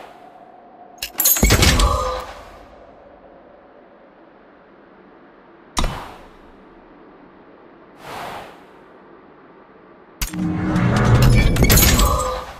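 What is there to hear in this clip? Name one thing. A treasure chest bursts open with a loud, bright magical whoosh and chime.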